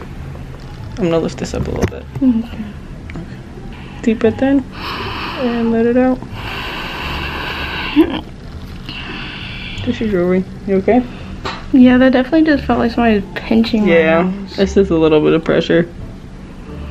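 A young woman talks close by, in short bursts.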